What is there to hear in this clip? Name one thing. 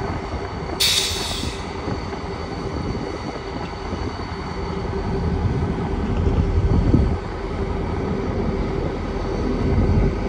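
A diesel locomotive engine rumbles steadily as it approaches.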